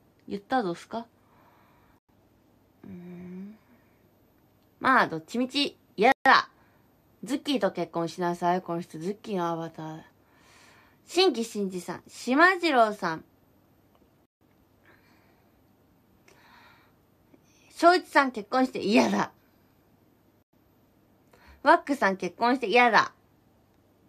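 A young woman talks with animation close to a microphone, in short bursts with pauses.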